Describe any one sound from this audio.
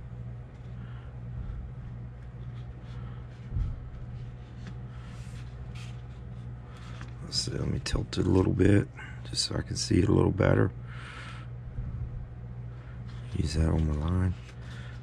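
Plastic sheet rustles and taps softly as hands handle it.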